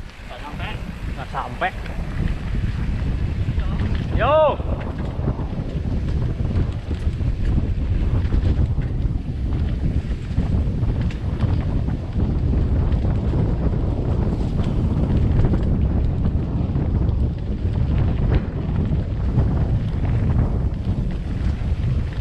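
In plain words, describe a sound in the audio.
Bicycle tyres roll and rattle over a rough dirt trail.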